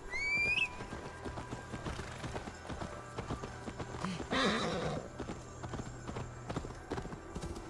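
Horse hooves thud steadily on snowy ground.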